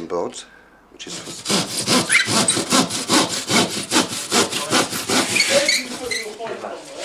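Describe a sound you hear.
A hand saw rasps through a board with quick, steady strokes.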